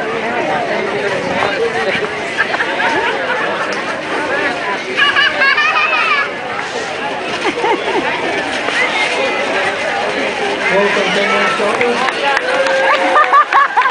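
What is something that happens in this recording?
A crowd of people chatters and cheers outdoors.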